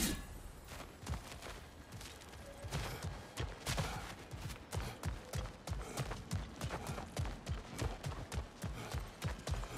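Heavy footsteps crunch steadily on dirt and stone.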